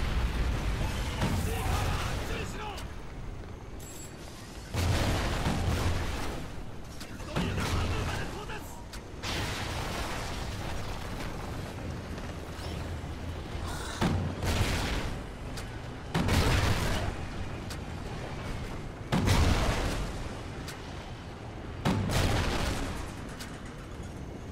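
Rifle fire cracks in loud bursts.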